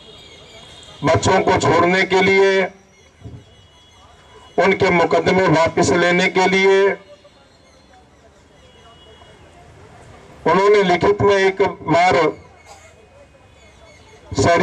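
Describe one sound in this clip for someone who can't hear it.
A middle-aged man speaks forcefully into a microphone through loudspeakers, pausing between phrases.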